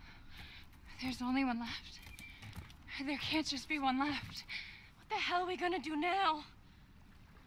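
A young woman speaks anxiously and close by.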